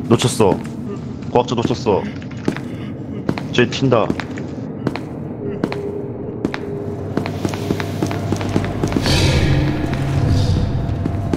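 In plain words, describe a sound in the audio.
Footsteps tap steadily along a hard floor.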